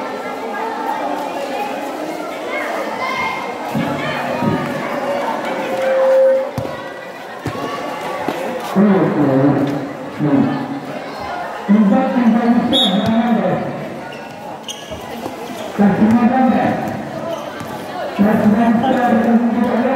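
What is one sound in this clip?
A basketball bounces on a concrete court.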